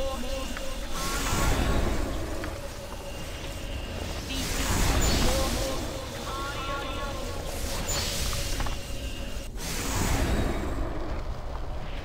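Magic spells burst with loud whooshing swells.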